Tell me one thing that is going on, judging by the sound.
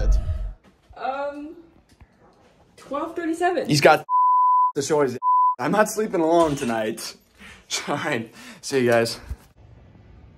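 A young man talks with animation close to the microphone.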